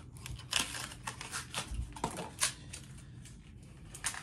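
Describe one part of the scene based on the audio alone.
Plastic crinkles and rustles in a young man's hands.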